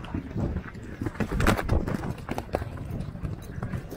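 A horse lands with a heavy thud after a jump.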